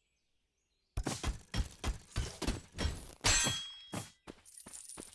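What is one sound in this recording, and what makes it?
Magic blasts and weapon hits crack in quick bursts.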